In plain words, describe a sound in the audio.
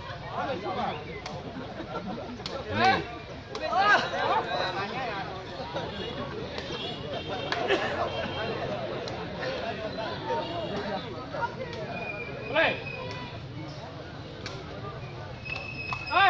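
A large outdoor crowd chatters and cheers.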